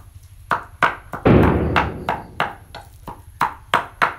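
A wooden game piece clacks onto a board.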